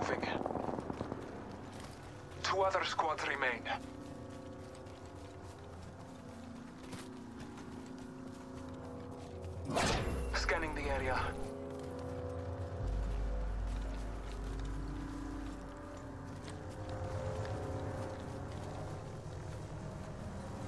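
Footsteps thud quickly over grass.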